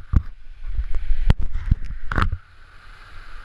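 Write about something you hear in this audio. Wind buffets a microphone in gusts.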